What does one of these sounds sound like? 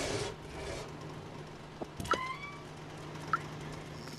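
A door creaks open.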